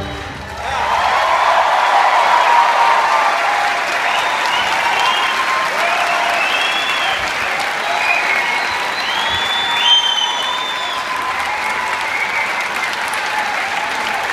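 Audience members whistle and cheer.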